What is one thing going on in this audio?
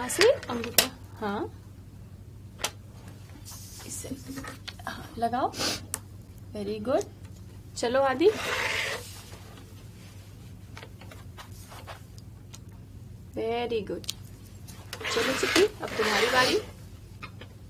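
A woman speaks calmly in short phrases.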